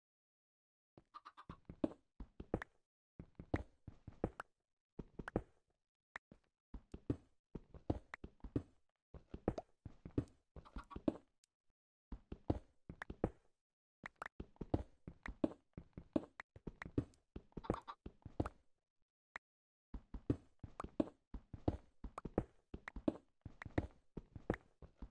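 A pickaxe chips at stone in quick, repeated knocks.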